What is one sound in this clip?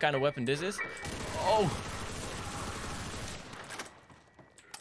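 An automatic gun fires in rapid bursts.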